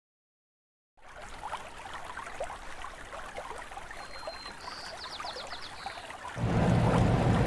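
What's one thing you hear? A stream trickles gently nearby.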